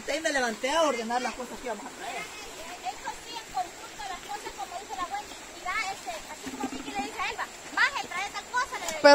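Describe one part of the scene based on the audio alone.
A shallow stream flows and gurgles over stones.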